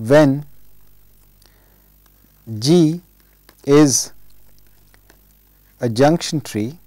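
A man speaks slowly into a close microphone, with long pauses between drawn-out words.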